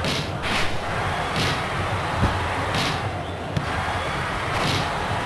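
A stadium crowd cheers steadily, with rising and falling swells.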